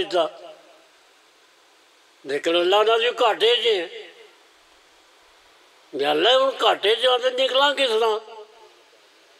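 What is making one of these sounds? An elderly man recites in a loud, impassioned chanting voice through a microphone.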